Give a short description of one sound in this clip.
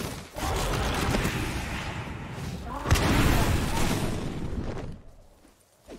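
A sword slashes and strikes flesh with heavy impacts.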